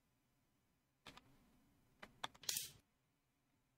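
A wooden game piece clicks onto a board.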